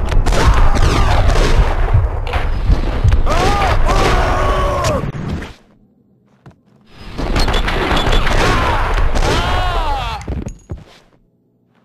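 Heavy gunshots boom in slow motion with long, deep echoes.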